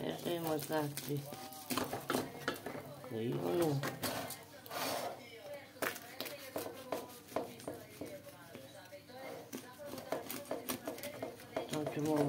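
A knife cuts through crisp pastry.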